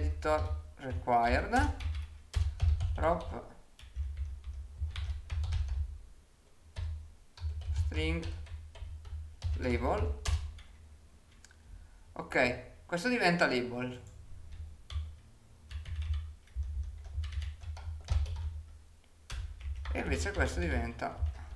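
Computer keys clatter.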